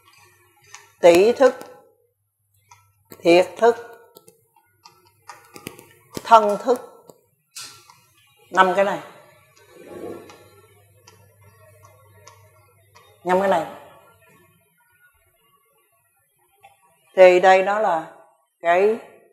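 An elderly man speaks calmly in short phrases, close by, in a slightly echoing room.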